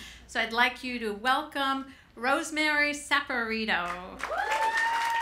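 A middle-aged woman speaks loudly and with animation through a microphone.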